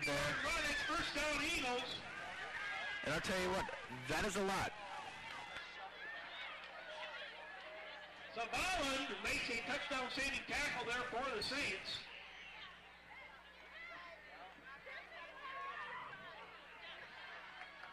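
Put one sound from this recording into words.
A crowd of spectators chatters and cheers outdoors.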